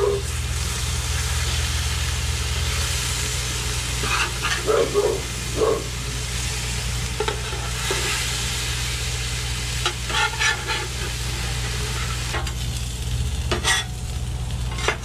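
A metal spatula scrapes and taps against a griddle.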